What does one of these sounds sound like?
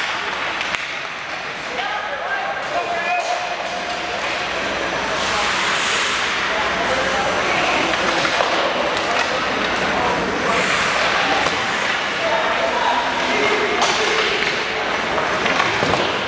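Spectators nearby talk and murmur.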